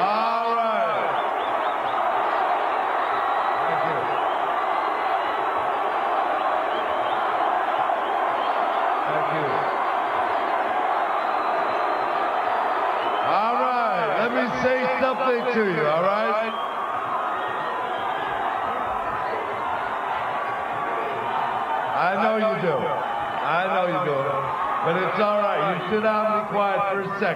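A middle-aged man shouts with animation through loudspeakers, echoing across open ground.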